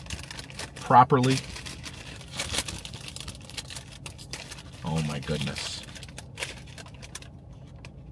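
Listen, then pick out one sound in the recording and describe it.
Paper wrapping crinkles.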